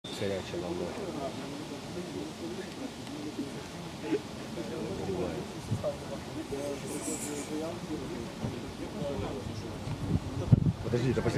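Several men chatter at a distance outdoors.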